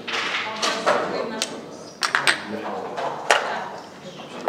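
Game pieces click against each other as they are moved on a board.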